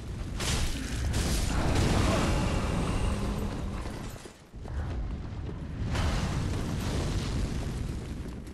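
Flames roar in a loud, rushing blast.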